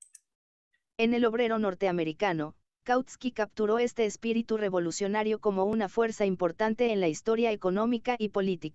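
A synthetic computer voice reads text aloud in an even tone.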